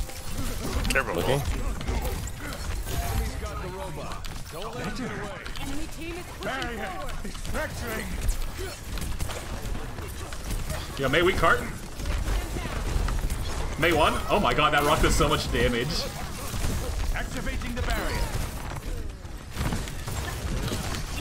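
Game gunfire and explosions sound in quick bursts.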